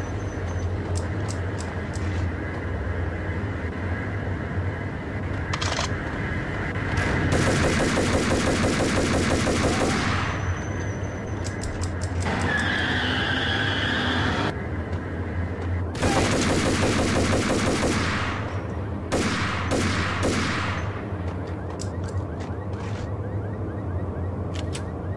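Gunshots ring out in sharp bursts in an echoing hall.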